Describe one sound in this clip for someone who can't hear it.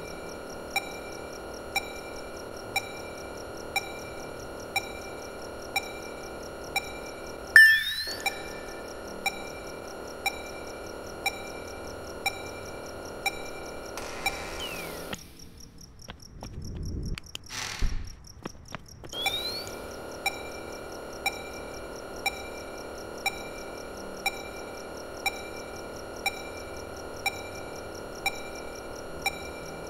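A computer hums steadily.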